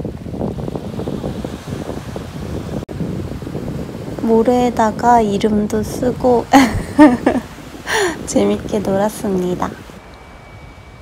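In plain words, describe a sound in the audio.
Waves wash onto a beach nearby.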